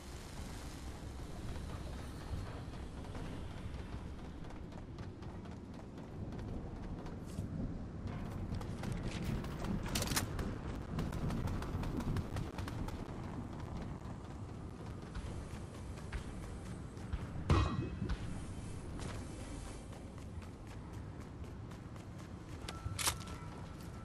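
Quick footsteps run over a hard surface.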